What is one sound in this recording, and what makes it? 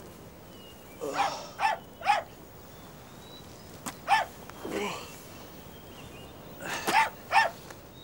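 A man mutters and speaks in a rough, strained voice close by.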